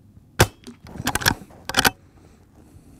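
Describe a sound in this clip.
A rifle's lever action clacks open and shut.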